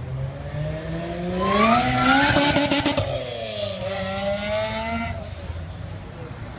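A sports sedan revs up and shifts through its gears as it accelerates away.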